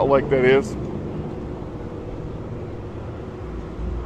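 A jeep idles and pulls away on a street.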